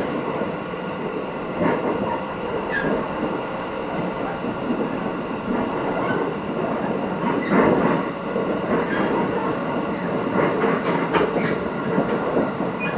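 A train rumbles steadily along the tracks, with its wheels clattering over rail joints.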